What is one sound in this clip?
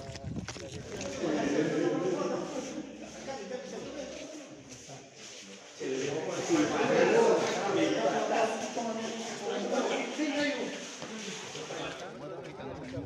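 Several men talk in a large echoing hall.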